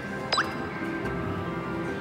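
A child presses a button with a click.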